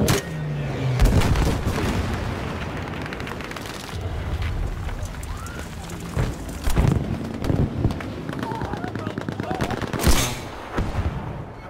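Explosions rumble close by.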